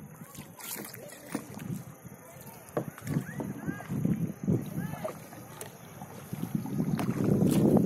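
Paddles splash in calm water.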